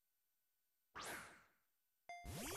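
A ball whooshes through the air as it is thrown.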